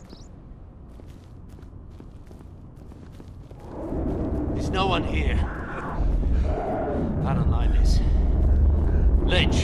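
Footsteps walk on a hard floor.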